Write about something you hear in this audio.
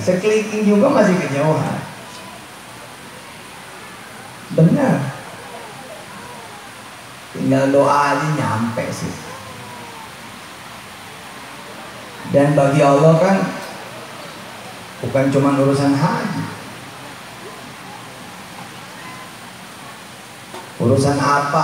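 A man speaks slowly in short phrases through a microphone and loudspeakers, with long pauses between them.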